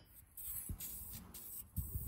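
A spray can hisses.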